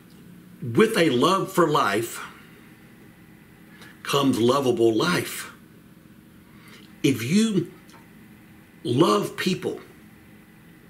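A middle-aged man speaks calmly into a microphone, in short phrases with pauses.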